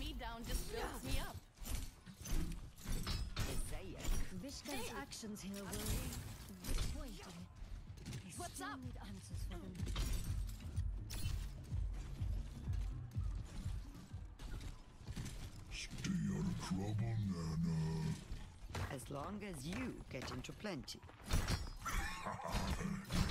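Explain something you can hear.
A heavy weapon swooshes through the air.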